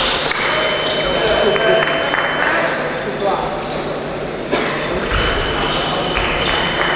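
A crowd murmurs steadily in the distance.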